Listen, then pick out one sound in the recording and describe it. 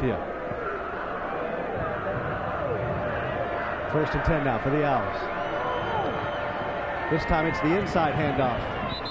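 A large crowd murmurs and cheers across an open stadium.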